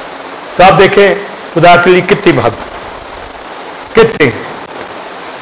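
A middle-aged man speaks forcefully into a microphone, heard through a loudspeaker, in short bursts.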